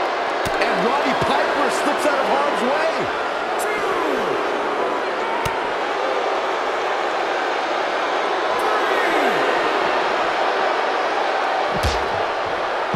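Heavy bodies thud onto a wrestling ring.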